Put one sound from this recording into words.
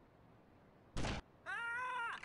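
A rifle shot cracks sharply.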